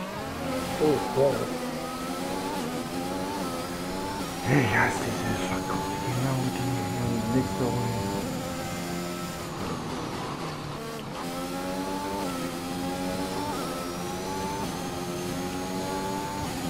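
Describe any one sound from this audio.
A racing car engine whines at high revs, rising through each gear and dropping with every shift.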